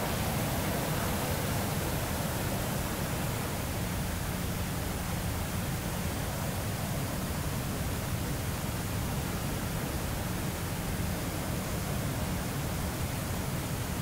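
A twin-engine jet fighter roars in flight.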